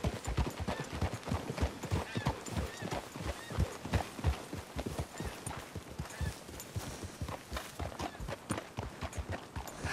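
Several horses' hooves clop steadily on a dirt path.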